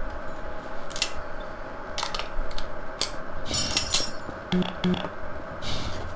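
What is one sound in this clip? A rifle is reloaded with metallic clicks and clacks.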